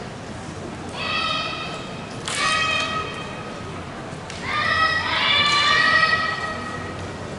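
Young women shout loud, sharp battle cries in a large echoing hall.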